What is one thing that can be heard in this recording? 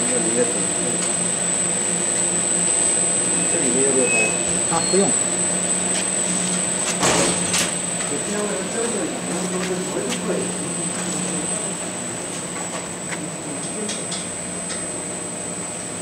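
A printing machine hums and whirs steadily as sheets roll through.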